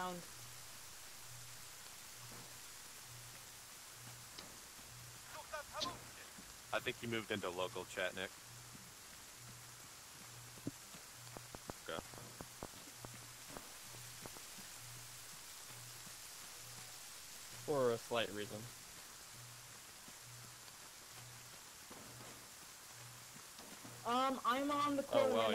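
Rain falls steadily, hissing outdoors.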